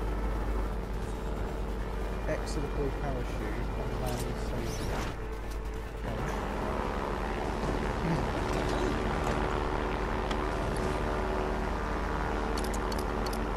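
A light plane's propeller engine drones steadily.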